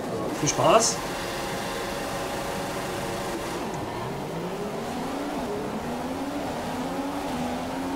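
Racing car engines rev and roar, rising in pitch as the cars pull away.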